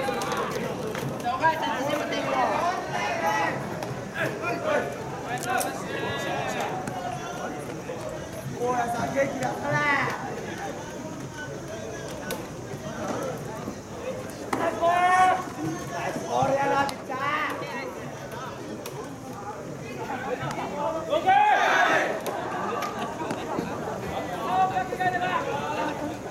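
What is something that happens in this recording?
Young men shout and chant from a distance across an open field.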